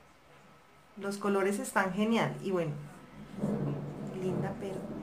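A young woman speaks calmly and clearly into a nearby microphone.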